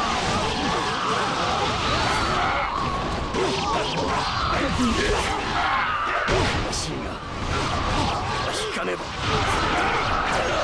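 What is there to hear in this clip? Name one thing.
Game sound effects burst and crackle with each strike.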